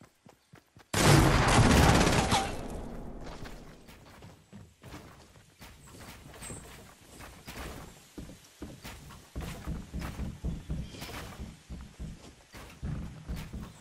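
Footsteps run quickly over grass and wooden floors.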